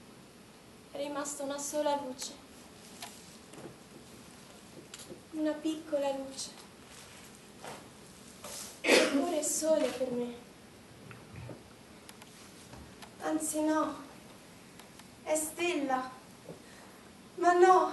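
A young woman cries out and wails in bursts on a stage.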